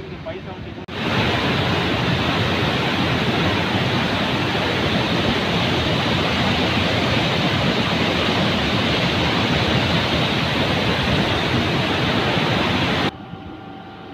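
A swollen river roars and rushes loudly.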